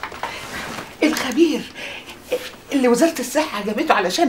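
An elderly woman talks warmly and with animation close by.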